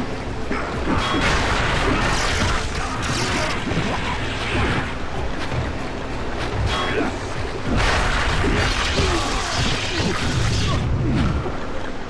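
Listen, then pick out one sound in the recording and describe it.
Metal blades slash and swish through the air in a fight.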